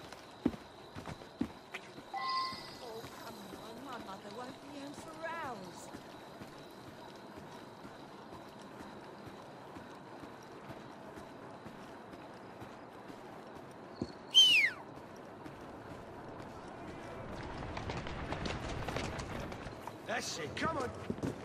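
Footsteps walk steadily on stone.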